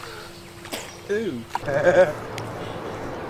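A young man calls out from the water.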